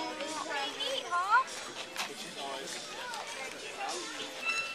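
A small child talks in a high, excited voice up close.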